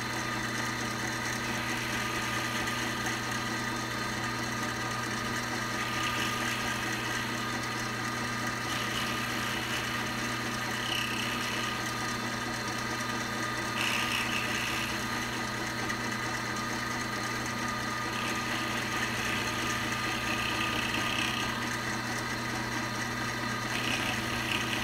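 A milling machine hums steadily as its cutter spins.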